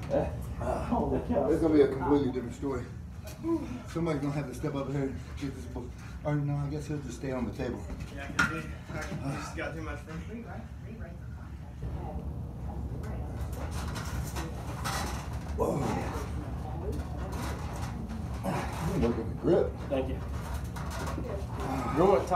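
A middle-aged man talks nearby with animation.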